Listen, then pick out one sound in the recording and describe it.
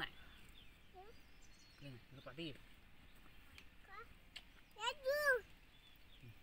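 A young child speaks in a high voice nearby.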